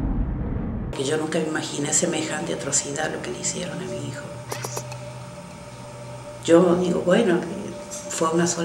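A middle-aged woman speaks emotionally, close by.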